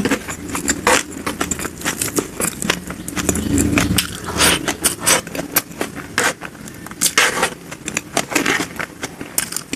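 Crumbly food rustles and squishes between fingers.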